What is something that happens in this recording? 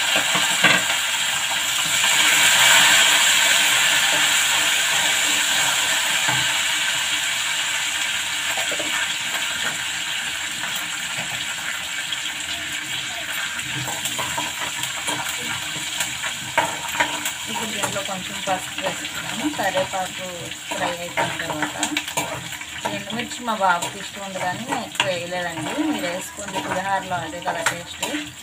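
Food sizzles and hisses in hot oil.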